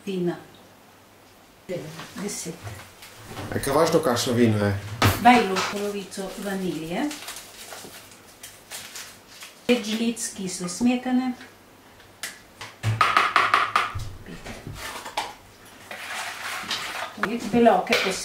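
An elderly woman talks calmly nearby.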